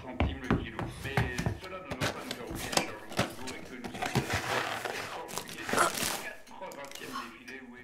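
A packet crinkles and rustles in a child's hands.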